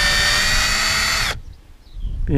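A cordless drill whirs loudly.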